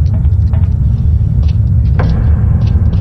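Hands and feet clank on a metal ladder.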